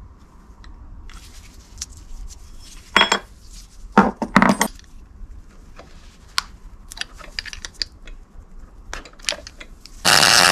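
Plastic parts click and clack as they are handled.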